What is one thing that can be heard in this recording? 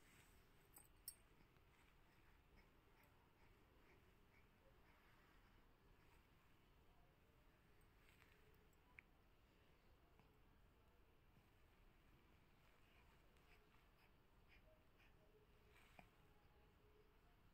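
A baby coos softly nearby.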